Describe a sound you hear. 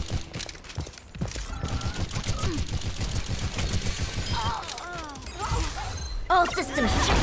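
Rapid gunfire blasts in quick bursts.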